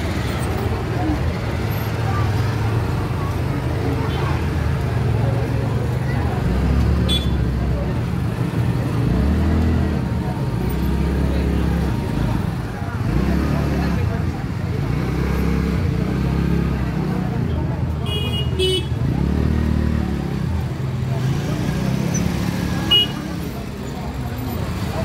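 A crowd of men and women talks and murmurs outdoors.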